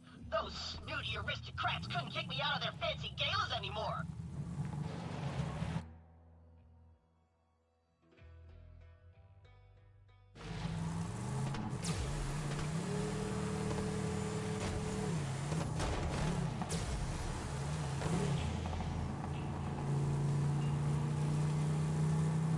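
A buggy's engine drones and revs as it drives over rough ground.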